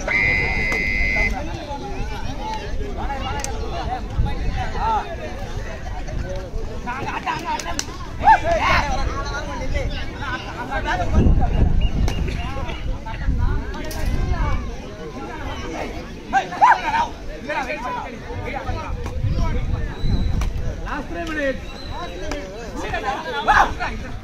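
A crowd of men chatters and shouts outdoors.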